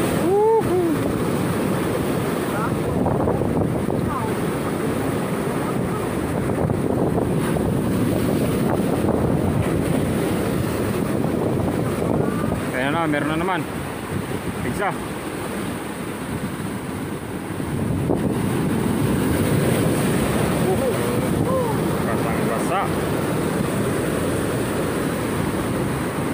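Waves crash and surge against rocks, outdoors in wind.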